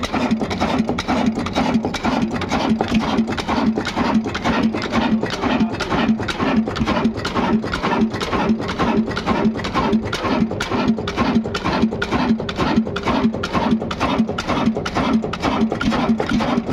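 An old diesel engine runs close by with a fast, steady knocking chug.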